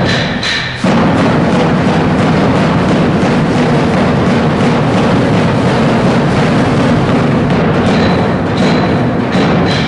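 Dancers' feet stamp and shuffle on a hard floor.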